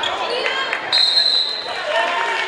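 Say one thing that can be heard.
A referee's whistle blows once.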